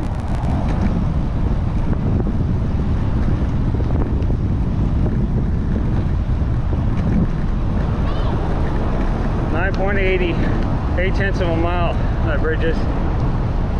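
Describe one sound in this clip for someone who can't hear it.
Wind buffets the microphone steadily outdoors.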